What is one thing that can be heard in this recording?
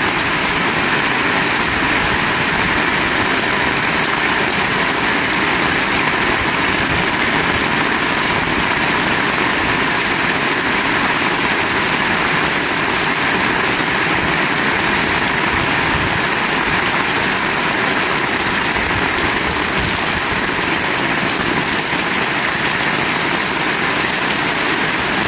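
Rainwater splashes on a wet paved ground.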